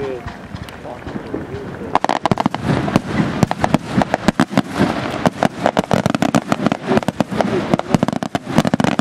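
Fireworks launch with whooshing whistles.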